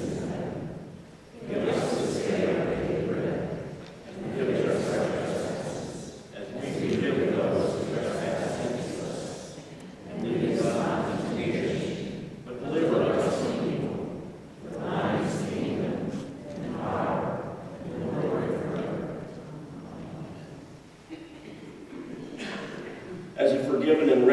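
A middle-aged man speaks steadily into a microphone in a large echoing hall.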